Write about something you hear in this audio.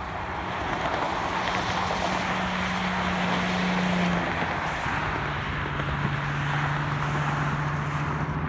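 Cars and trucks rush past steadily on a highway below.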